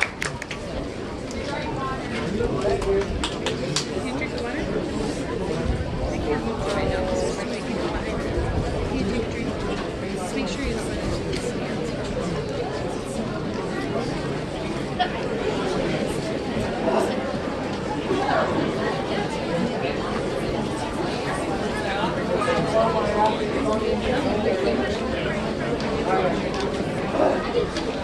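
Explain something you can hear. A brass band plays a cheerful tune outdoors.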